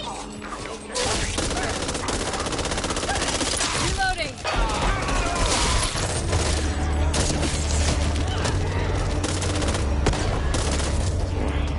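Automatic gunfire rattles rapidly and loudly.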